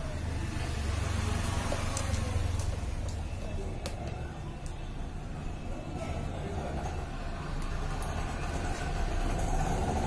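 Small plastic parts click and tap against a circuit board being handled.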